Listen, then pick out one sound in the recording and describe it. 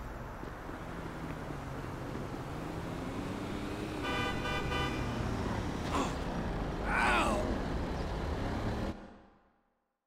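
A car engine rumbles as the car approaches.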